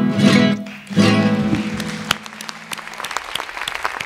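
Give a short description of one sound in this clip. A woman sings a long final note through a microphone in a large hall.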